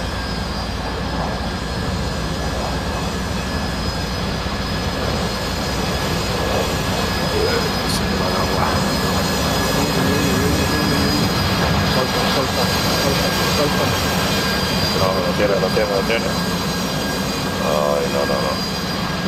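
A jet engine roars steadily as a jet hovers nearby.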